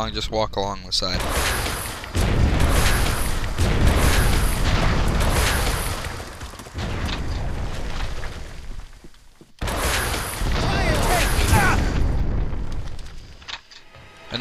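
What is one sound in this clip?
A gun fires in rapid bursts, echoing through a tunnel.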